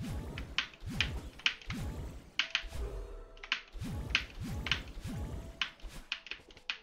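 A video game character dashes with quick, repeated whooshing bursts.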